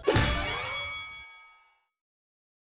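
A bright game chime rings out and fades away.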